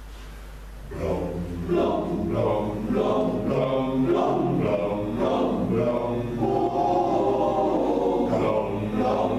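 A choir of men sings together in a hall.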